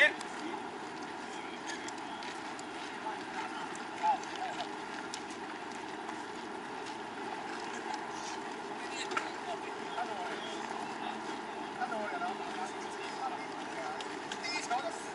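Young men call out to each other in the distance across an open field.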